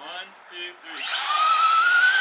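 A toy car's electric motor whines as it speeds up.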